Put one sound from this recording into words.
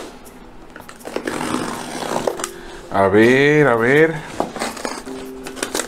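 A knife slices through packing tape on a cardboard box.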